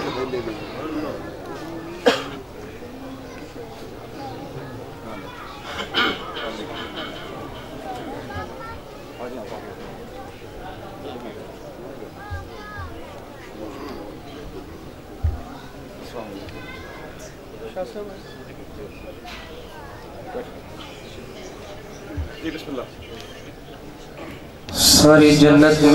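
Many men murmur and talk quietly in a large gathering.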